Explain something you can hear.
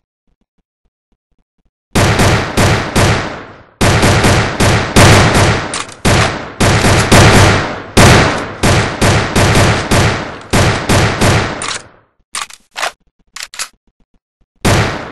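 A gun is reloaded with a click.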